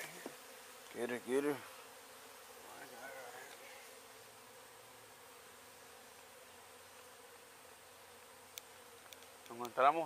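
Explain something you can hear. A man speaks briefly nearby in a calm voice.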